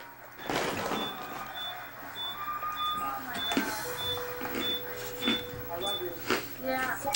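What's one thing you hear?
An electronic meter beeps in short, evenly spaced tones.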